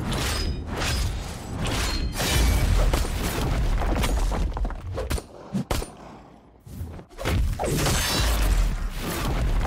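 Swords clash and slash with metallic swishes.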